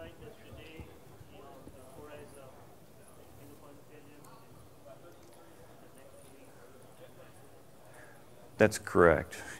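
A man speaks faintly and distantly in a large hall.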